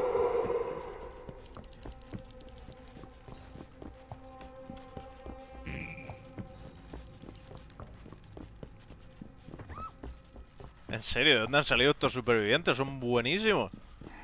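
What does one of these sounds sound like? Footsteps tread on a hard, debris-strewn floor.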